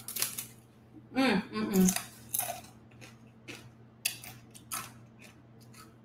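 A young woman crunches on a tortilla chip.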